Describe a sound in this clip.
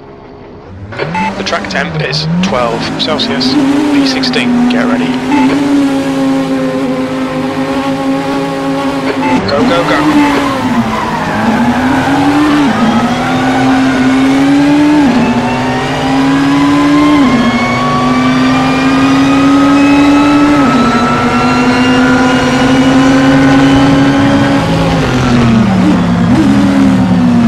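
A racing car engine revs loudly and climbs through quick gear changes.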